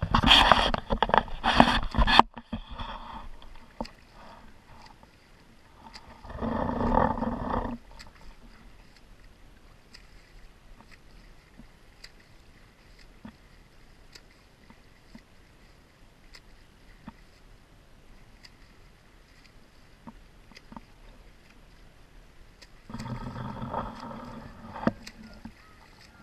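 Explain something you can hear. Water laps and splashes close by, outdoors.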